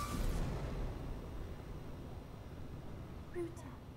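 A deep explosion booms and rumbles, then fades.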